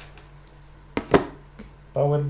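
A small hard case is set down on a table with a soft knock.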